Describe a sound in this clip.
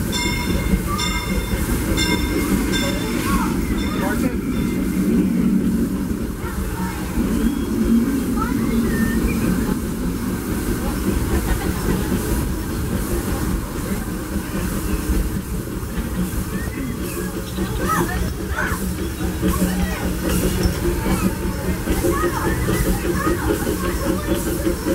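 A steam train rumbles and clatters steadily along its rails.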